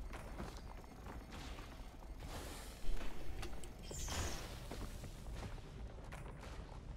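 Video game sound effects whoosh and crackle.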